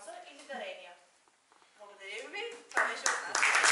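A young woman speaks to a crowd.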